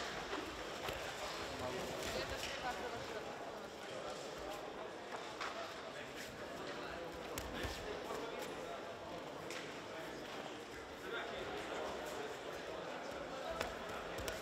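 Bare feet thump and shuffle on a mat.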